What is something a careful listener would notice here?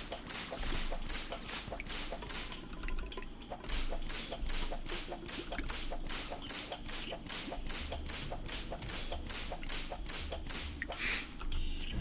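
Short game digging sounds tick rapidly and evenly, one after another.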